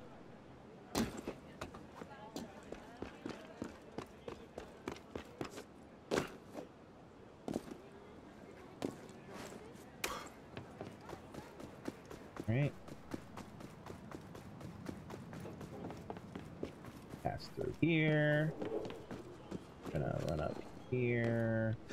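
Quick footsteps and soft thuds patter as a figure climbs and runs.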